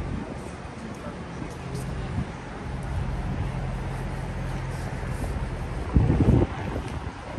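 City traffic hums steadily along a street outdoors.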